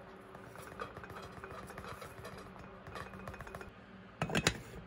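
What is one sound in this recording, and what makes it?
A paper coffee bag crinkles as grounds are poured out.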